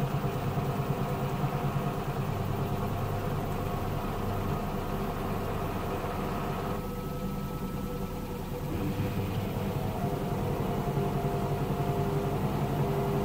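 A front-loading washing machine hums as its drum tumbles a wash.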